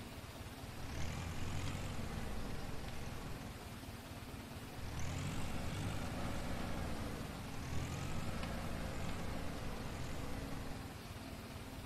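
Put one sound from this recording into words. A tractor engine idles and revs.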